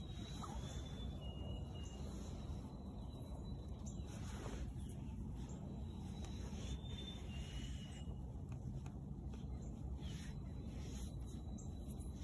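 Fingers press and rustle soil in a pot.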